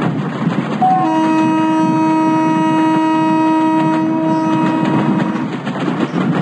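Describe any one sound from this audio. A train horn blows a long, steady blast.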